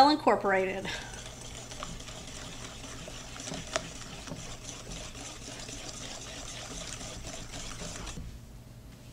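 A whisk beats batter briskly against a bowl.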